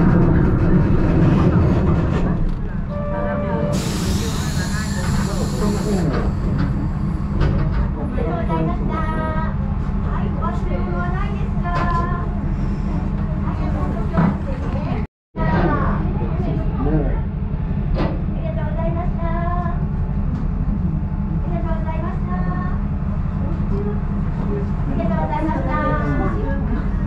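A small train rumbles and rattles steadily along the tracks.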